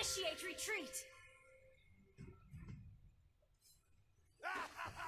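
Fantasy game sound effects chime and whoosh in quick bursts.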